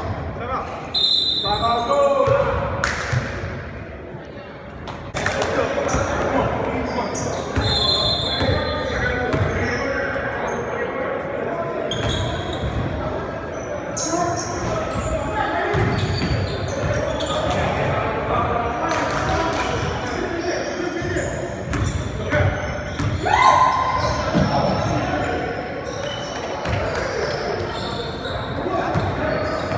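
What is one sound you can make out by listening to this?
A basketball bounces on a hard floor, echoing.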